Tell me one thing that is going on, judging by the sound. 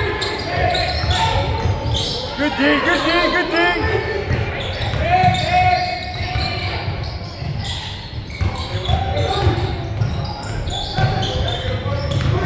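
Young players shout and call out in an echoing gym.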